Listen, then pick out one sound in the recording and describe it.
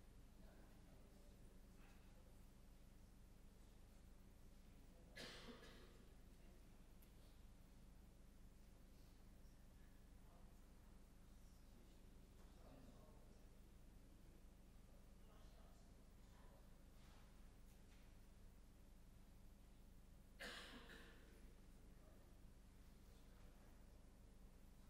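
An elderly man speaks calmly over an online call, heard faintly through a loudspeaker in a room.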